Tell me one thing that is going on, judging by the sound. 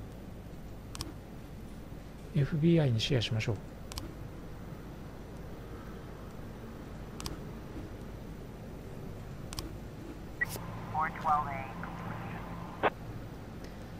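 Menu buttons click softly now and then.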